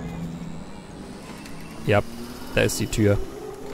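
A wooden door opens.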